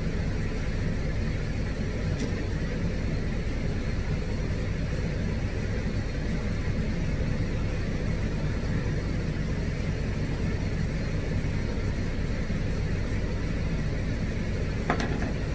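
A metal comb rasps softly through thick fur.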